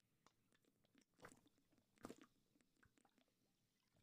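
A young man gulps water from a plastic bottle.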